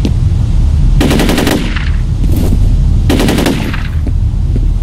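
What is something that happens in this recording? An assault rifle fires short bursts.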